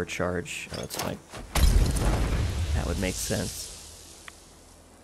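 Footsteps rustle through dry brush.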